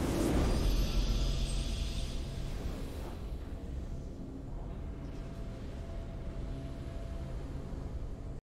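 A triumphant game fanfare plays.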